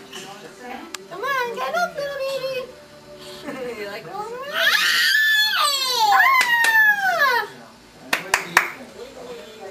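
A toddler babbles and squeals loudly close by.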